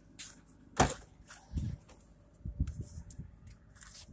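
A car trunk lid clicks and pops open.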